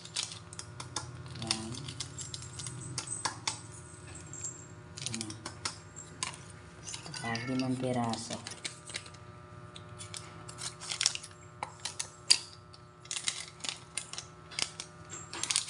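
A plastic spoon taps and scrapes against a plastic bowl.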